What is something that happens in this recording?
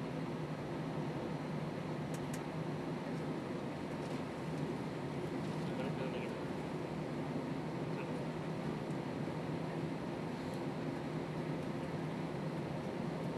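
Wheels rumble over the runway as the airliner taxis.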